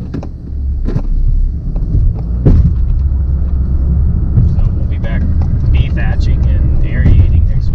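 A vehicle engine rumbles low and steady inside the cab.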